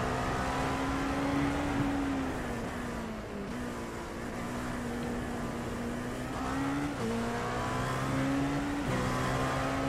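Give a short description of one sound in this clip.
A racing car engine drones steadily, rising and falling in pitch through gear changes.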